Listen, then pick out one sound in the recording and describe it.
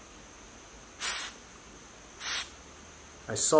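Gas hisses in short bursts from a pressurized can.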